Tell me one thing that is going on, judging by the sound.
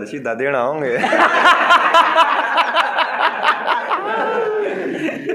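Several young men laugh and cheer together.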